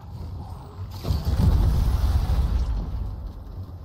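A deep rumbling blast booms in a video game.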